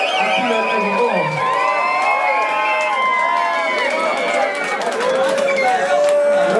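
A crowd cheers and shouts in a loud, echoing room.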